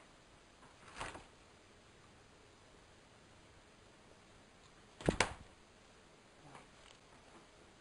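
A cupboard door bangs open and shut.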